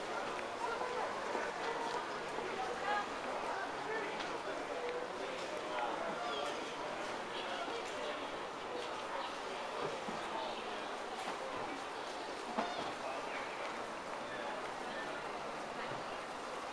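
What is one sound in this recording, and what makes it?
Many people walk and murmur around in a busy open public space.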